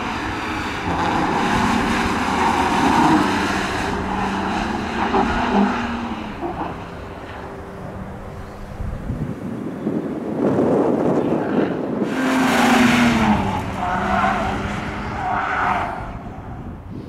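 Tyres squeal on asphalt.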